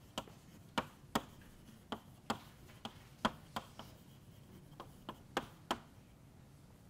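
Chalk taps and clicks sharply on a blackboard.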